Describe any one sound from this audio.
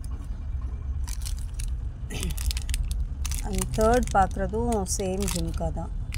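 A plastic packet crinkles as it is handled.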